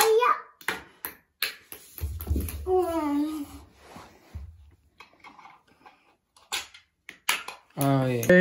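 A plastic toy launcher clicks as a ball is flicked.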